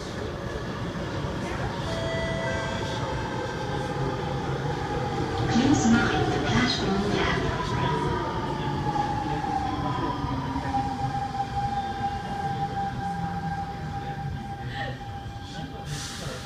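A subway train rumbles and screeches past on its rails close by.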